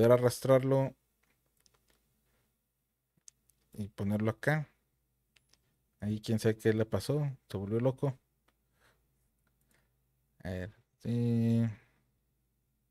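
A man talks calmly into a close microphone, in short bursts.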